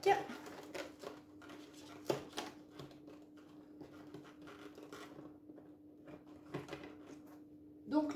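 A cardboard box rustles and clicks as a flap is opened.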